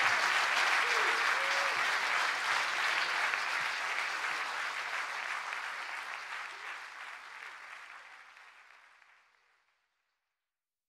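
An audience applauds and cheers loudly in a large hall, then the applause fades away.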